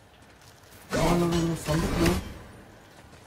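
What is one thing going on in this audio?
An axe swings and strikes with a heavy impact.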